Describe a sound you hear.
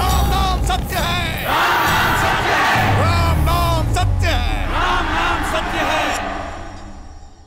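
A large crowd cheers loudly outdoors.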